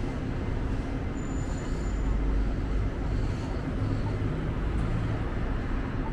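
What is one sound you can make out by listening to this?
A bus drives past.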